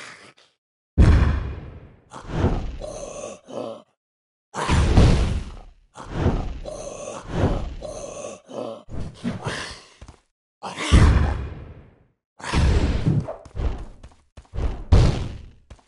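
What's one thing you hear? Fireballs whoosh and explode with deep booms.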